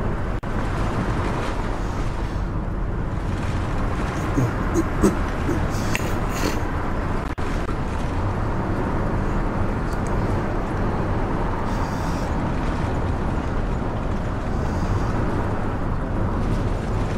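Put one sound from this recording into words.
A heavy vehicle's engine rumbles steadily as it drives along.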